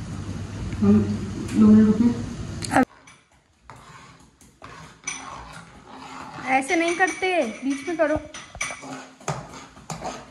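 A spatula scrapes and clinks against a pan.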